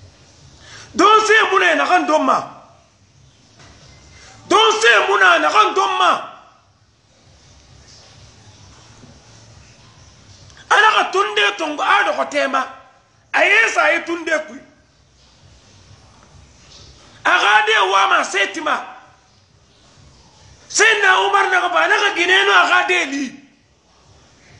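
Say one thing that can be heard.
A man speaks forcefully in short bursts, close to the microphone, with pauses between.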